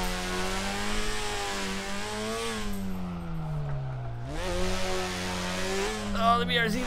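A car engine drones loudly, its pitch rising and falling as it revs.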